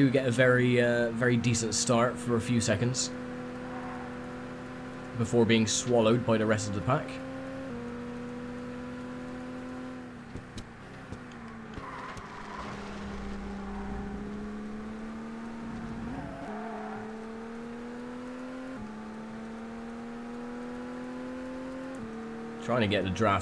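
A racing car engine drones steadily, rising in pitch and dropping briefly at each gear change.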